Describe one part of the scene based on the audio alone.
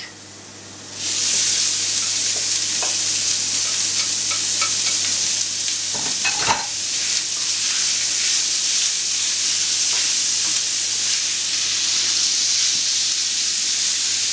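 Minced meat sizzles loudly in a hot pan.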